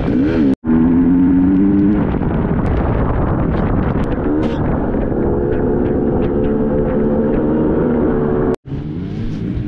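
A dirt bike engine roars and revs up and down close by.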